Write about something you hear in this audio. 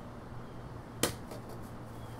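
A blade chops into branches with a sharp thwack.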